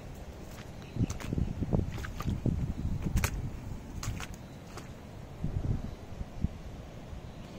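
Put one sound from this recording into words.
Footsteps thud on wet wooden planks close by.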